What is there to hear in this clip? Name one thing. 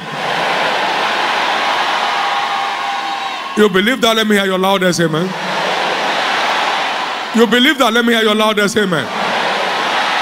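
A large crowd cheers and murmurs in a big echoing hall.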